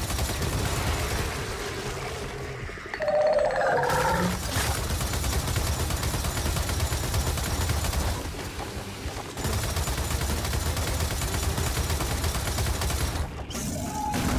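Twin heavy guns fire in rapid bursts with loud booming blasts.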